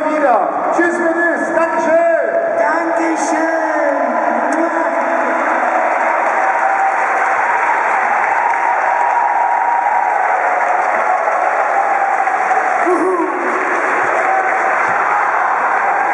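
A large crowd cheers and roars loudly in an open arena.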